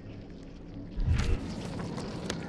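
Stiff paper crackles and rustles as a map is unfolded.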